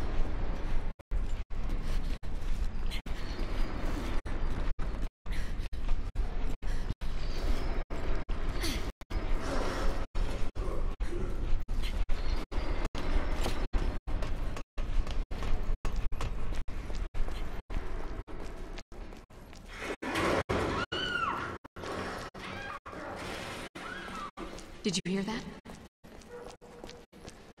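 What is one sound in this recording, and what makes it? Footsteps shuffle and tap on metal and concrete.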